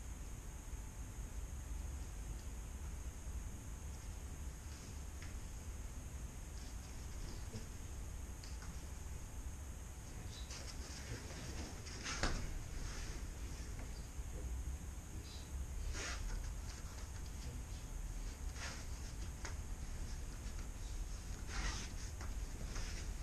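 Bare feet shuffle and thump on a padded mat.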